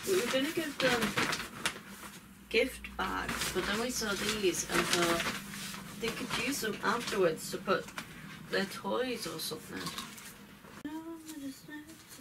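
A paper gift bag rustles.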